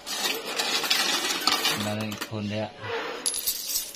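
Coins clink as they are set down on a hard surface.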